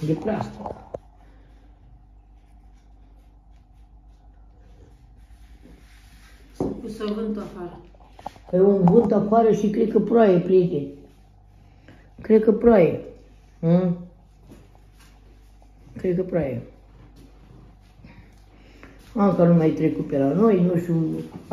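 An elderly woman talks calmly close by, in short bursts.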